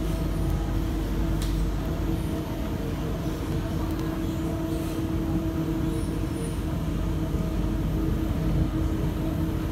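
A train hums and rumbles steadily as it rolls along the track.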